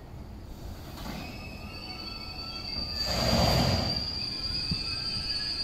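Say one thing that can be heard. Train wheels squeal shrilly on the rails.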